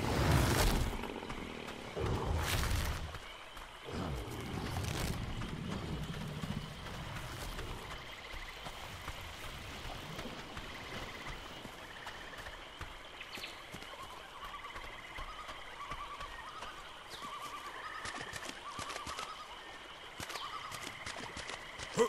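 Footsteps rustle through leafy undergrowth.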